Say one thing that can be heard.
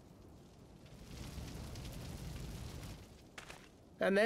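Lava rumbles low for a moment.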